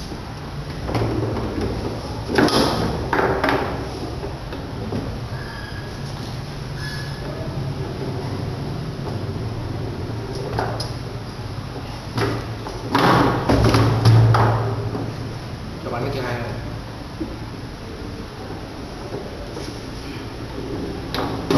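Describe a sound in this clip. A plastic ball knocks against the rods and walls of a table football game.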